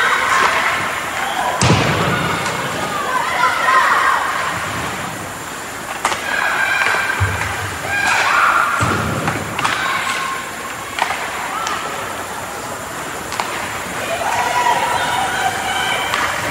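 Young players shout to each other across the ice.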